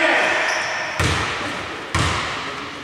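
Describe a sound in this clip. A basketball bounces with hollow thuds on the floor.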